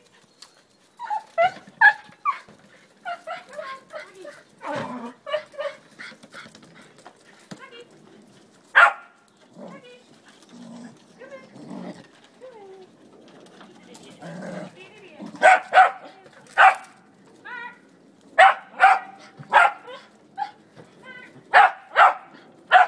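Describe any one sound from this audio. Small dogs bark sharply and excitedly.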